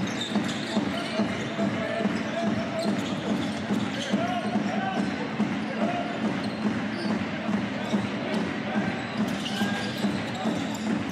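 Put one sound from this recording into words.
A basketball bounces rhythmically on a hard court.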